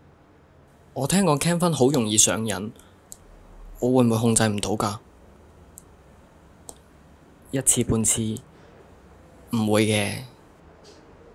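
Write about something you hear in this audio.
A young man speaks quietly and thoughtfully, close by.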